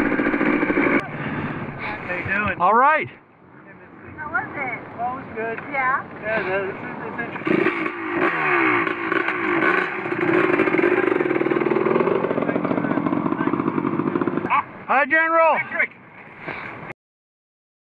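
Motorbike engines idle and rev up nearby.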